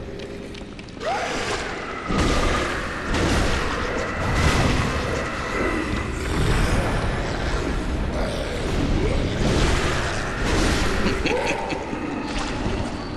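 A blade slashes and strikes enemies with heavy impacts.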